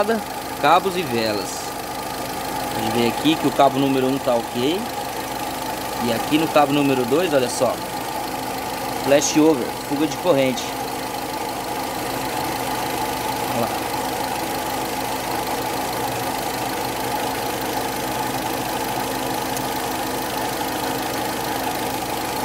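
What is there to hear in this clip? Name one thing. An engine idles with a steady hum.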